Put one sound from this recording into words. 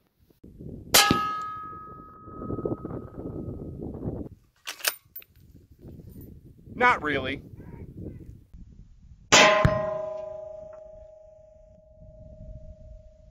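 A bullet strikes a steel target, which rings out and slowly fades.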